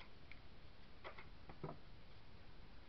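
Small objects tap and click against a hard surface.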